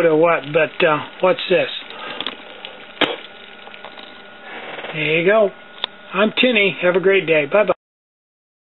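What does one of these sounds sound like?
A small stove burner hisses and roars steadily.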